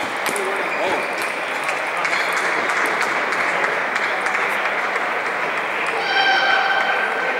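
Table tennis balls click against paddles and tables throughout a large echoing hall.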